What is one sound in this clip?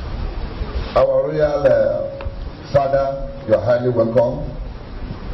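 A man speaks through a microphone over loudspeakers in an echoing hall, slowly and formally.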